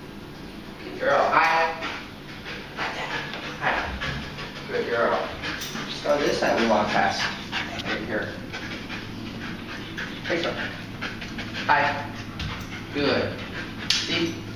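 A man speaks commands to a dog in short bursts, close by, in a small echoing room.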